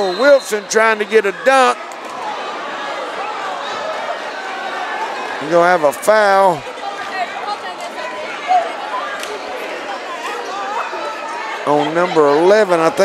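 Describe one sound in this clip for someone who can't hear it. A crowd chants loudly in bursts.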